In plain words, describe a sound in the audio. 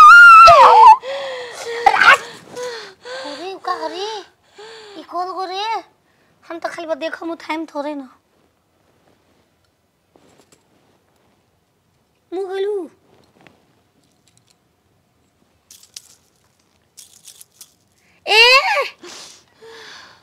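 A young woman moans and cries out in pain.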